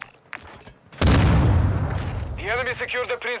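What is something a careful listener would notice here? A loud explosion booms and rumbles, echoing in a large hall.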